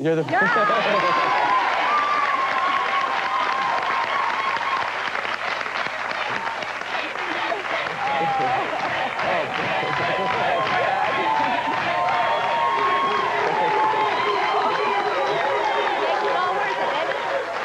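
A middle-aged woman laughs heartily.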